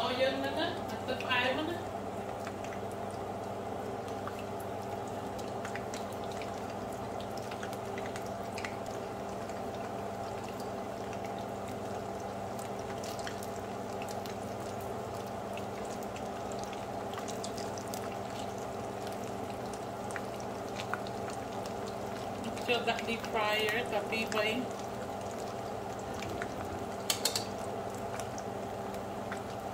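Hot oil sizzles and bubbles steadily in a pan.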